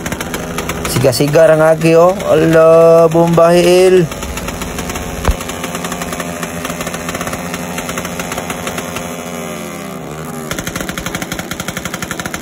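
A motorcycle engine revs loudly.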